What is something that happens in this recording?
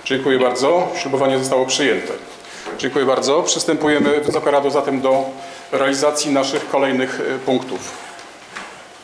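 A man reads aloud calmly in a room with a slight echo.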